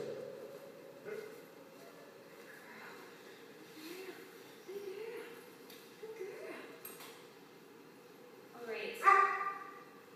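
A young woman speaks softly to a dog.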